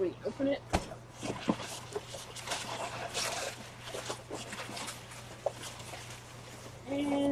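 Packing material rustles as it is dug through.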